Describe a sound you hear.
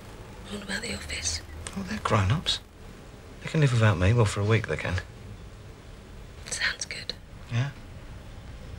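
A man speaks quietly and earnestly.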